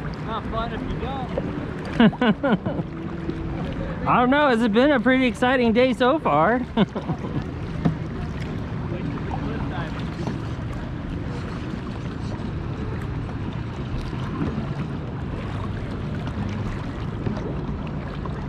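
A kayak paddle dips and splashes in water.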